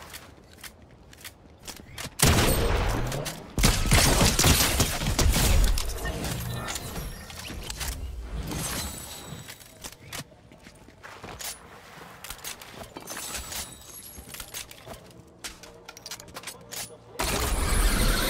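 Footsteps run quickly on a hard floor.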